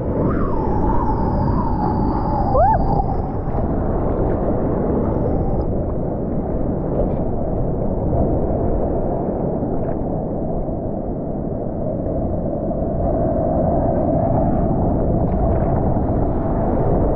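Ocean waves break and crash close by.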